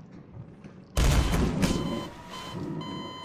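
A magic spell whooshes through the air and bursts with a loud crash.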